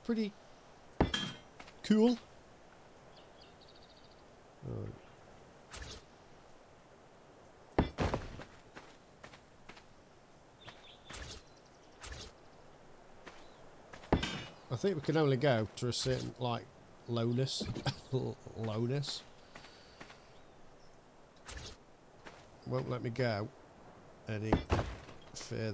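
Stone blocks thud into place as they are built.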